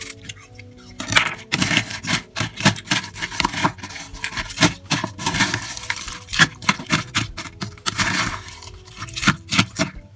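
Yogurt squelches wetly as it is mixed.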